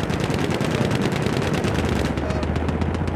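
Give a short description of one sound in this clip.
A machine gun fires in rapid bursts.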